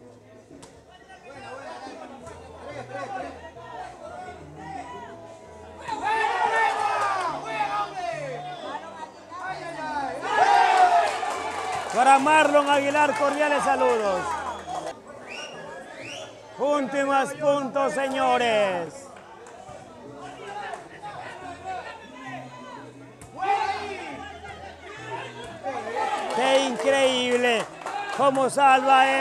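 A crowd of young men cheers and shouts loudly outdoors.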